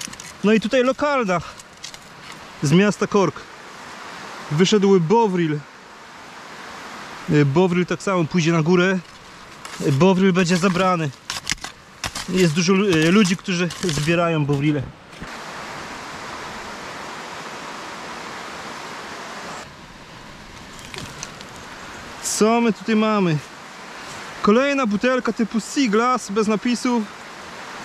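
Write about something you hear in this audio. Leaves and branches rustle as someone pushes through dense undergrowth.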